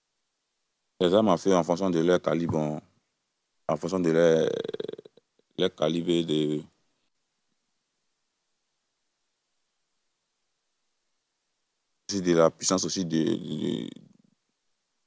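A young man speaks calmly into a microphone, pausing between phrases.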